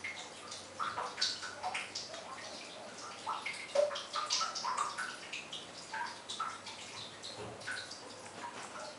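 A puppy wriggles and scratches on a soft towel, rustling the fabric.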